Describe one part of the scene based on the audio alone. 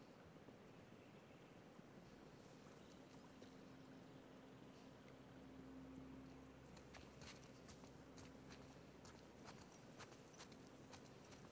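Tall grass rustles softly.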